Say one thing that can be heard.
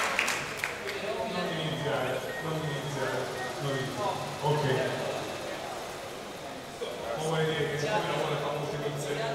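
A man speaks into a microphone through loudspeakers, with animation.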